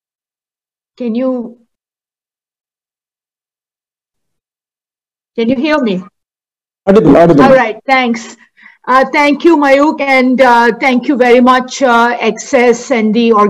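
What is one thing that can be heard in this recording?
A middle-aged woman speaks calmly over an online call, with long pauses.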